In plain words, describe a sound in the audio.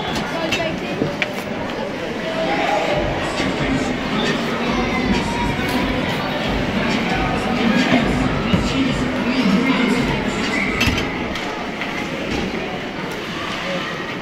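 A crowd of young players calls out across an echoing rink.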